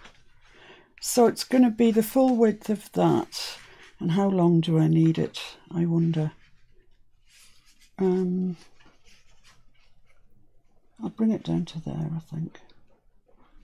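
A woman talks calmly into a close microphone.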